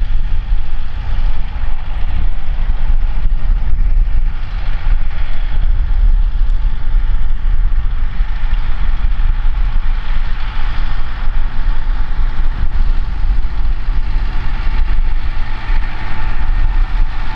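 A tractor engine rumbles steadily as it drives.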